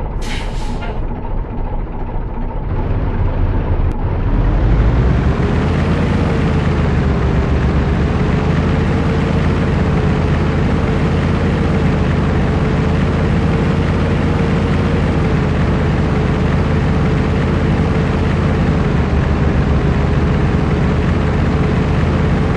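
A truck engine rumbles steadily and revs up as the truck drives along.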